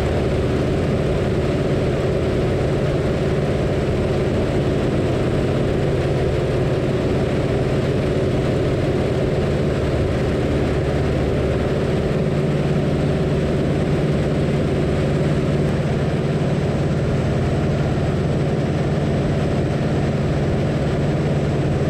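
Wind rushes past in a strong, steady roar.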